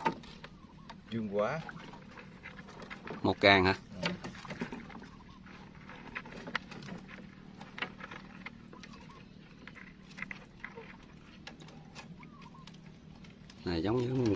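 A wire trap rattles and clinks.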